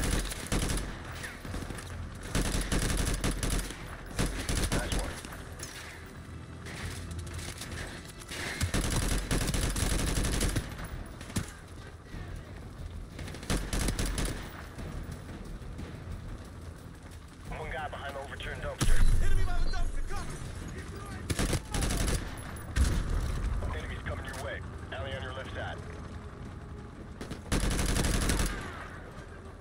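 Rifle fire cracks out in loud, repeated bursts.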